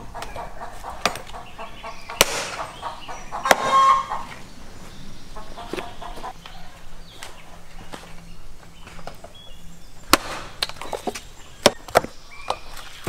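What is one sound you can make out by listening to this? An axe chops through meat and bone on a wooden block with sharp thuds.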